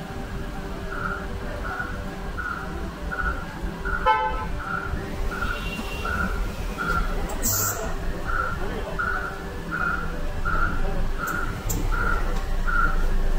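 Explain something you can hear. A wheel balancer beeps in a steady, even rhythm.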